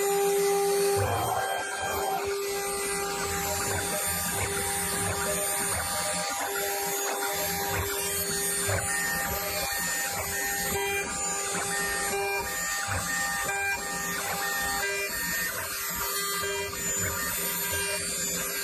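A cutter grinds and chatters against metal.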